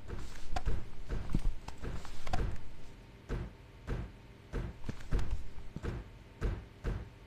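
Footsteps thud on a hard floor in a steady rhythm.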